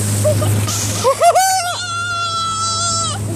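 A man laughs and shouts loudly close by.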